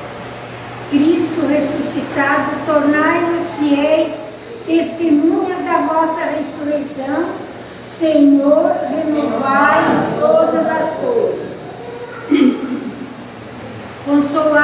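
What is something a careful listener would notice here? A woman reads aloud clearly through a microphone in a room with some echo.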